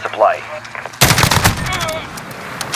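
Rapid gunshots crack in a short burst.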